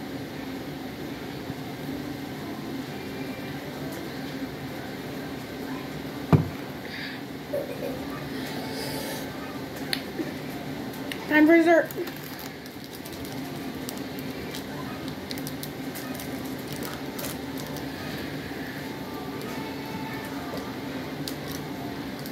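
A young boy sips a drink through a straw.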